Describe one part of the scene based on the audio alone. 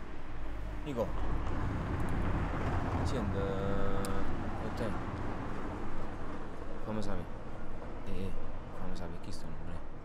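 A young man speaks quietly into a phone, close by.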